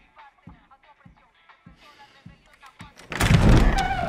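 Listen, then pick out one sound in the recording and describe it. A typewriter clacks with quick key strikes.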